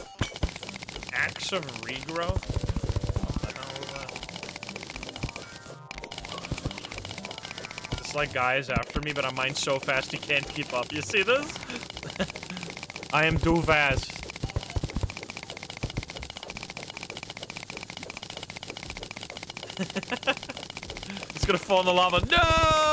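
A young man talks casually and laughs into a close microphone.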